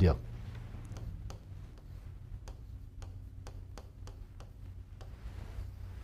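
A pen taps and clicks against a board.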